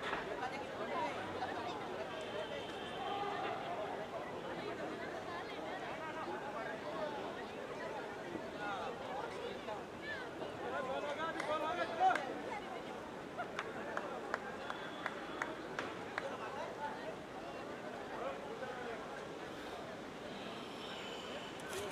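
A crowd chatters and calls out from the stands, heard outdoors.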